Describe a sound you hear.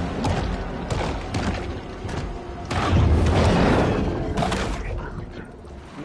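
Water churns and bubbles loudly around a swimmer.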